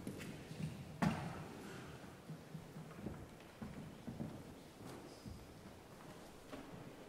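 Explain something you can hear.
A piano bench bumps and scrapes on a wooden stage.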